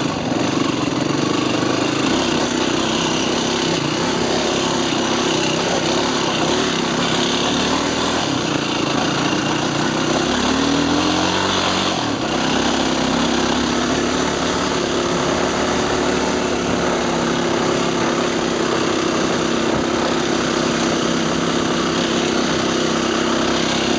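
Tyres rumble and crunch over a rough dirt track.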